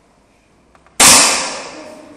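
An air rifle fires with a single sharp bang.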